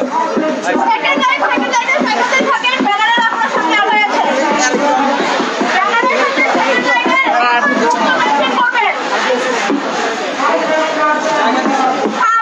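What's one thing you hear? A large crowd of young men and women chant slogans loudly outdoors.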